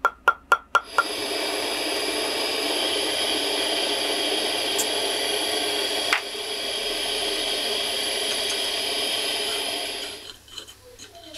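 A gas torch roars with a steady hiss.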